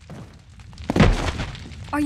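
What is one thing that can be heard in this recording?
A heavy thud sounds as someone lands from a jump.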